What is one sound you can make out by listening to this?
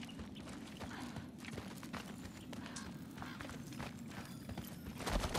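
Footsteps crunch on gravel at an even walking pace.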